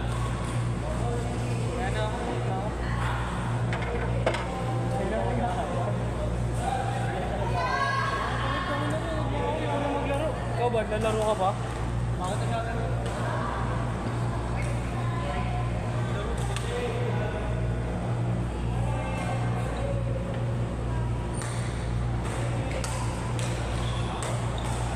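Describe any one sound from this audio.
Young men talk and call out nearby in a large echoing hall.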